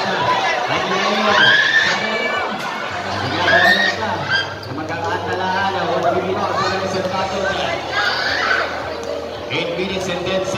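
A large crowd of spectators cheers and shouts loudly in an echoing hall.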